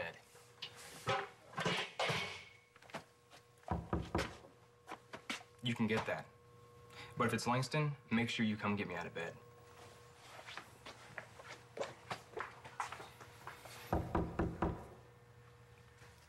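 A second young man answers in a low, tense voice.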